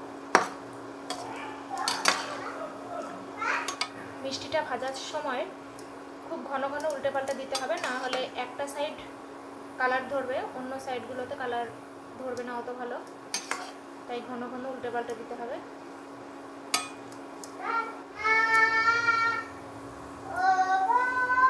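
Hot oil sizzles and bubbles steadily.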